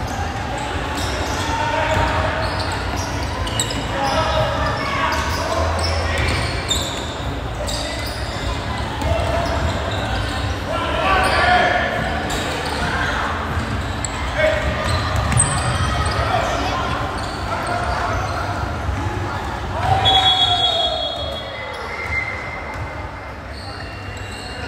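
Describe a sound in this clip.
Players and spectators shout and call out across an echoing gym.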